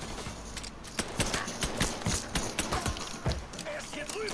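Pistol shots crack in quick succession.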